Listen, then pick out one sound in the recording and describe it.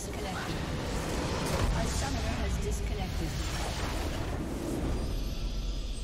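A loud blast rumbles and crackles as a structure explodes in a game.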